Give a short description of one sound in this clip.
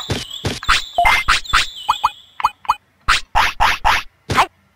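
Short electronic blips sound one after another.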